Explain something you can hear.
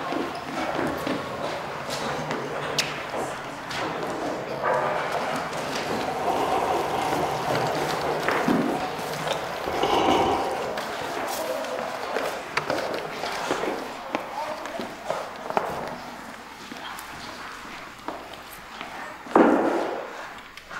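Footsteps tap on a hard floor in an echoing hall.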